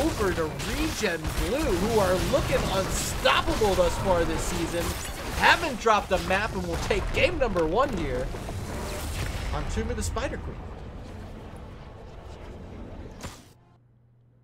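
Magic blasts and weapon clashes of a fierce fight ring out.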